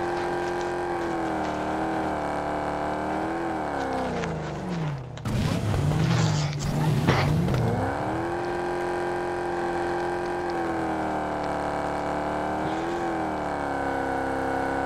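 A car engine drones steadily, rising and falling in pitch as it speeds up and slows down.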